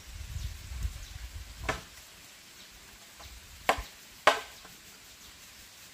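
Bamboo strips knock and clatter against each other.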